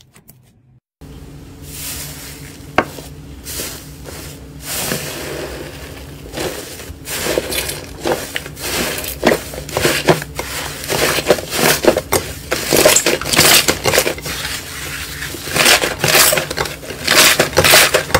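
Fluffy slime crackles and pops loudly as hands pull and knead it.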